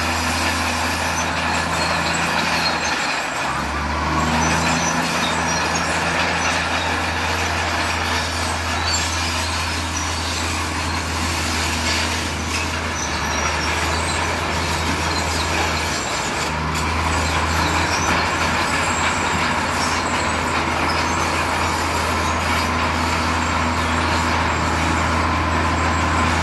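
A heavy truck engine rumbles steadily close by.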